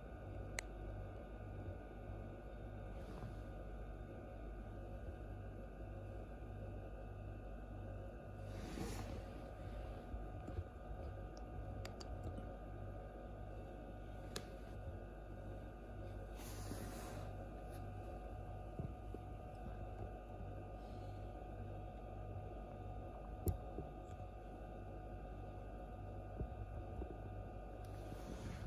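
An incubator hums steadily.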